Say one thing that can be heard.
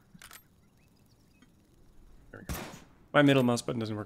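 A gunshot cracks once.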